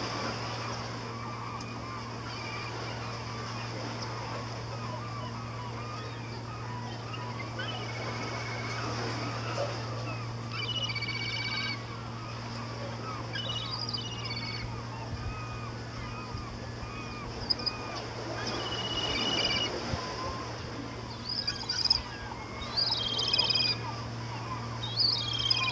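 Small waves lap gently against rocks at the shore.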